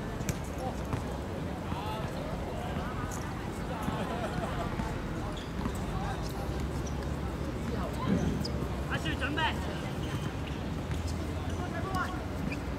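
Young men call out to each other across an outdoor court.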